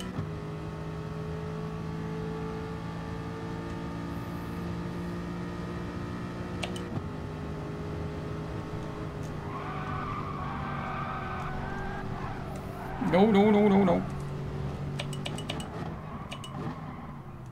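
A racing car engine whines steadily at high revs.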